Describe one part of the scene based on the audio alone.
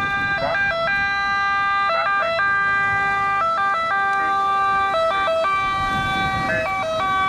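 An ambulance siren sounds a loud two-tone wail with quick warbling bursts.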